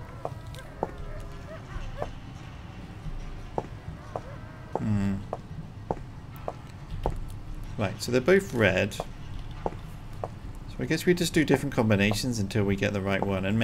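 Footsteps tread slowly on a stone floor.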